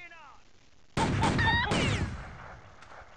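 A revolver fires a loud shot that rings out briefly.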